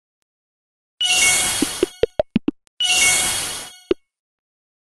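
A mobile game plays short rushing whoosh sounds with chimes.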